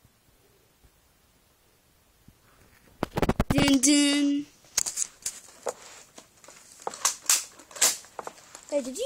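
Soft plush toys rustle and bump as they are handled close by.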